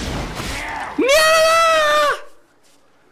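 A young man shouts excitedly.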